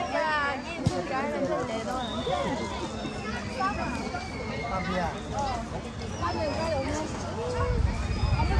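A crowd of young men and women chatter and talk lively outdoors.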